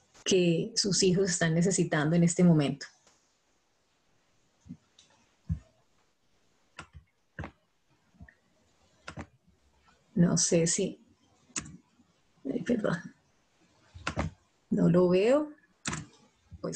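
A woman speaks calmly through an online call, pausing often.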